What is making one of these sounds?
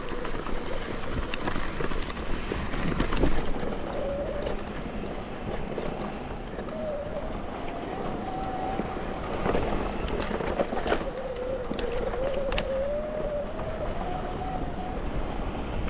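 Bike tyres roll and crunch over a rough dirt trail.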